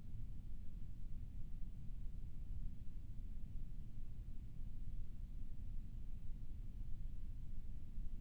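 Wind rushes past with a steady low rumble.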